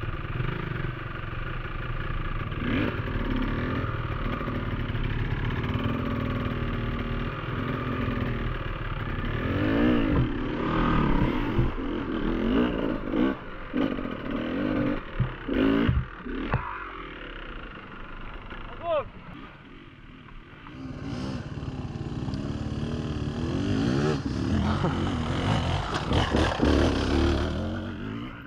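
A dirt bike engine revs hard close by.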